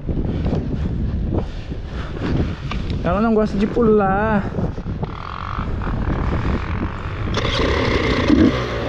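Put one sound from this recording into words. A dirt bike engine idles with a low, uneven rumble.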